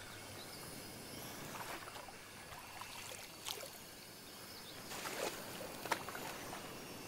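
Rocks splash into water.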